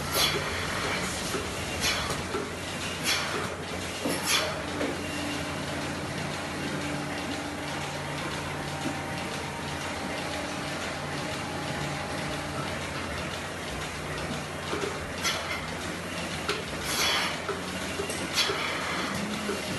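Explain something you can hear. Milking machines pulse and hum steadily.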